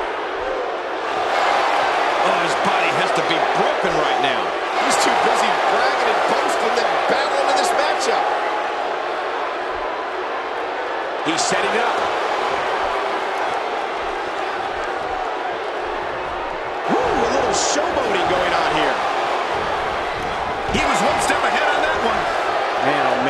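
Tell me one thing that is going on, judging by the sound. A large crowd cheers and roars in a big echoing arena, swelling in bursts.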